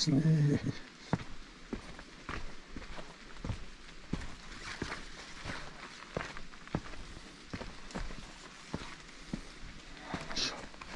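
Footsteps thud steadily on earth and wooden steps.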